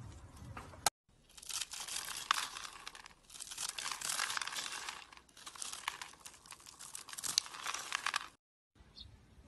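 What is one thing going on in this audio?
A knife scrapes and shaves crumbly soap with a dry rasp.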